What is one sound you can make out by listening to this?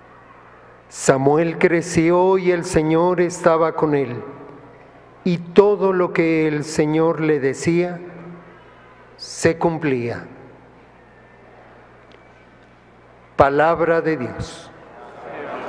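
An elderly man reads out slowly through a microphone in a large echoing hall.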